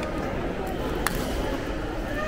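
A straw pokes through a plastic cup lid with a click.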